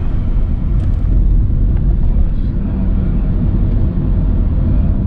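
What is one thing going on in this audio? Tyres rumble low and steady on the road.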